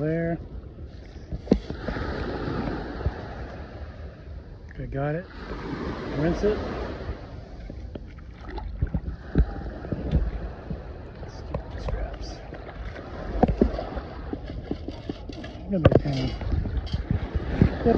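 Small waves wash gently onto the shore.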